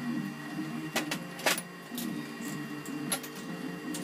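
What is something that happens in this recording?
Metal tools clank against a metal vise.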